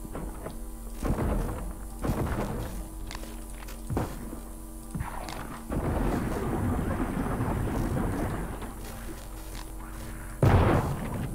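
A gun fires bursts of goo with a wet, hissing spray.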